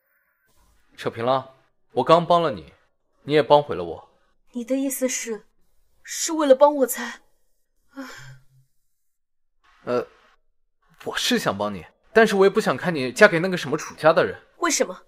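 A young man speaks close by in a tense, low voice.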